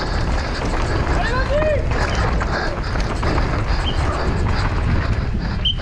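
A bike's chain and frame rattle over bumps.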